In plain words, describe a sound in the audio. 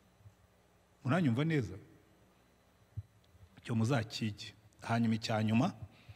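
A middle-aged man speaks emphatically into a microphone, heard through loudspeakers in a large hall, with pauses between phrases.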